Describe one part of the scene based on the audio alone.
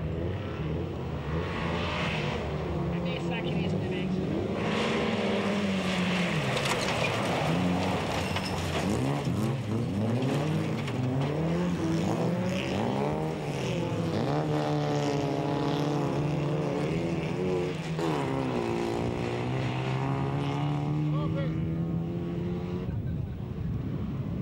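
Race car engines rev up and down through the gears.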